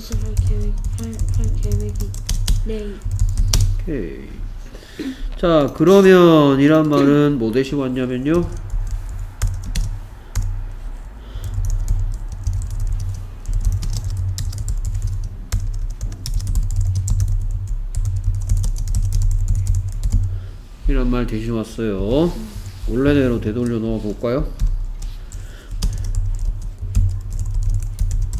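Keys on a keyboard click in quick bursts of typing.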